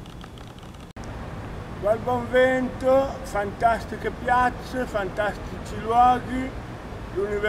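A man sings loudly with a full voice close by.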